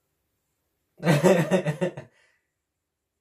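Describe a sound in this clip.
A young man laughs loudly and excitedly, close to a microphone.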